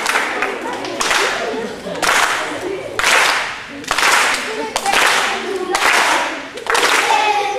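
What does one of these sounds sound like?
Children cheer in loud bursts.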